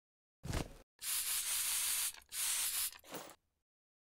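A trigger spray bottle sprays mist in short bursts.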